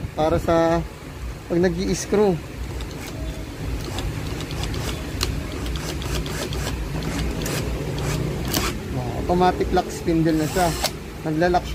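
A drill chuck clicks and ratchets as it is twisted by hand.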